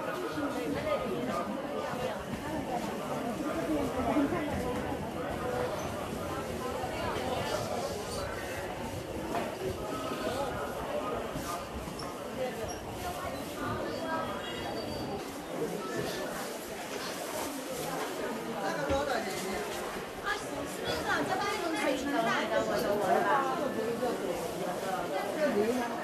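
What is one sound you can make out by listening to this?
A crowd of men and women chatters nearby in a busy market.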